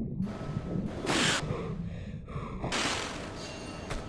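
Water splashes loudly as a swimmer climbs out.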